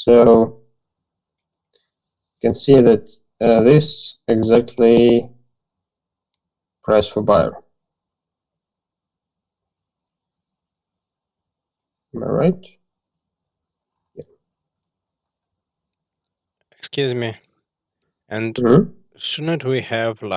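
A man speaks through an online call, explaining calmly with long pauses.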